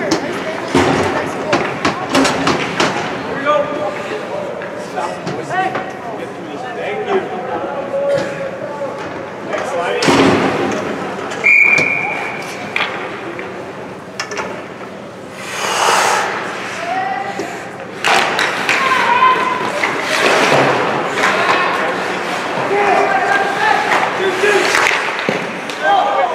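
Ice skates scrape and carve across the ice.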